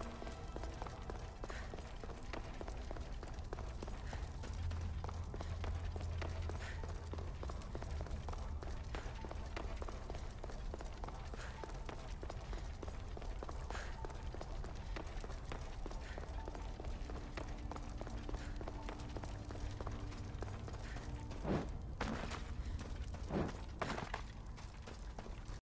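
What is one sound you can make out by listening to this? Footsteps tread slowly on stone.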